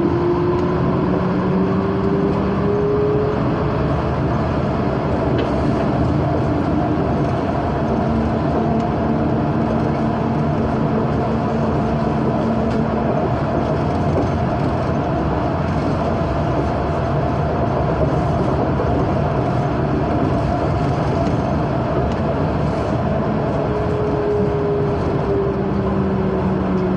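A train rumbles steadily along an elevated track.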